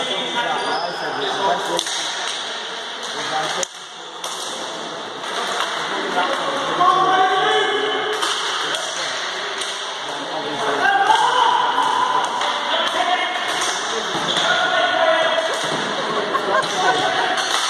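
Sticks clack against a ball and the floor in an echoing hall.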